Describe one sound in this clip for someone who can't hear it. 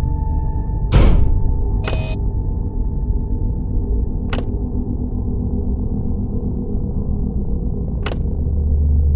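A button clicks sharply, several times.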